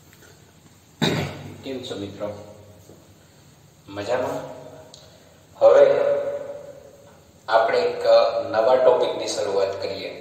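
A man speaks in short bursts, loudly and clearly like a teacher explaining, in a room with some echo.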